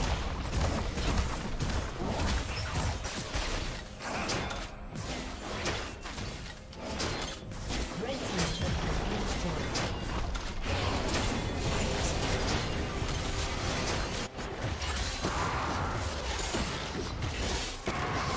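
Spells and attacks crackle and whoosh in a fast game fight.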